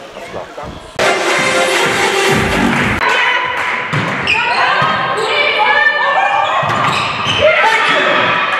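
Young women shout and cheer in an echoing hall.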